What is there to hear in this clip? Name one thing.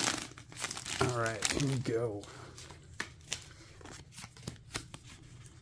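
Trading cards slide and click against each other.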